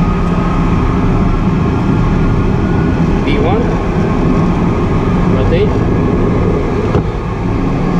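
Tyres rumble on a runway.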